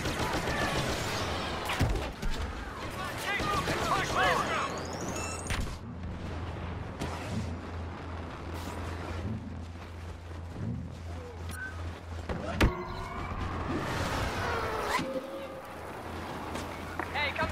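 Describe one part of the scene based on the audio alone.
Blaster rifles fire in rapid bursts.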